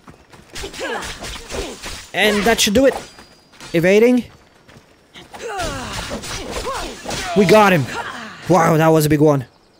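Blades clash and strike in a fight.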